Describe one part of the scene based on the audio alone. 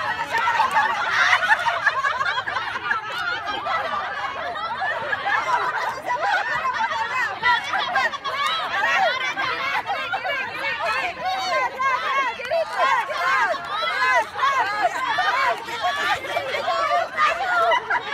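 A group of women chatter and call out outdoors.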